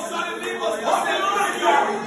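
A young man prays aloud with fervour.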